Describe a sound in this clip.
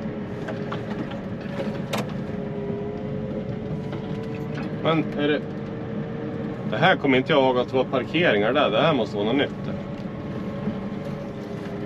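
A loader's diesel engine hums steadily close by.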